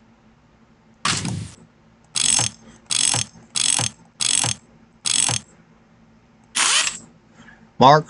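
Short electronic game sounds play in quick bursts.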